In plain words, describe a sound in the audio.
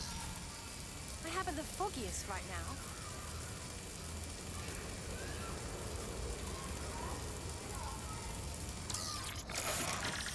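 A small robot's metal legs skitter and clatter.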